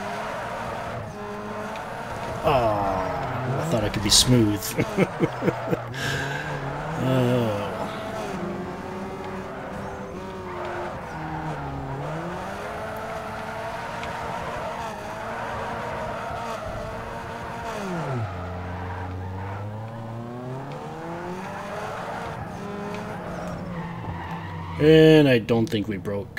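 Tyres screech as a car drifts around corners.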